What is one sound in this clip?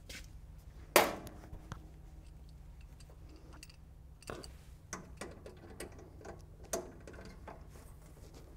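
Metal parts clank and click as a man handles equipment.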